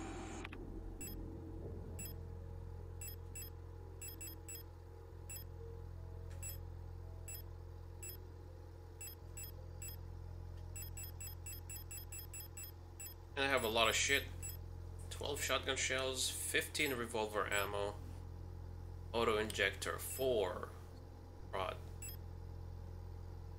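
Short electronic menu blips tick as a selection moves from item to item.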